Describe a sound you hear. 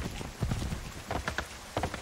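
Horse hooves clatter on a wooden bridge.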